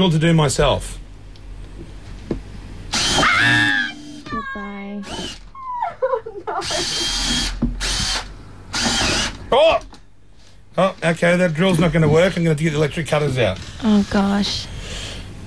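A young woman laughs nearby.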